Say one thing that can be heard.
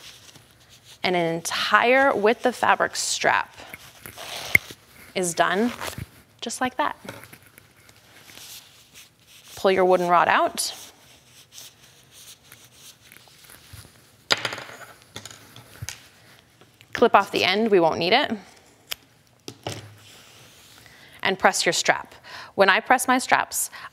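A woman speaks calmly and clearly, close to a microphone.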